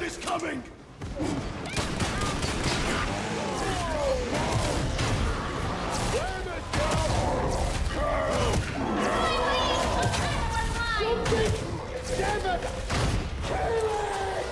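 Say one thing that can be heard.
Heavy weapons fire and strike in rapid bursts.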